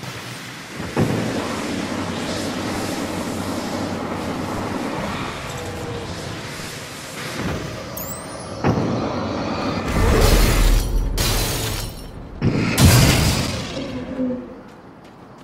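A shotgun fires with loud booms.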